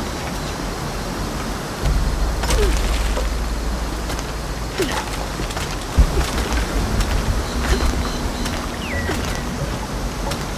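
A waterfall pours steadily nearby.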